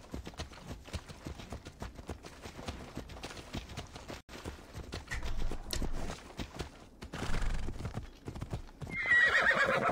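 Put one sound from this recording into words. A horse's hooves thud steadily on a dirt path.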